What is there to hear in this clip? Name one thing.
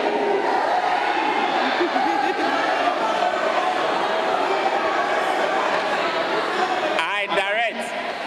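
A crowd of people cheers and chatters.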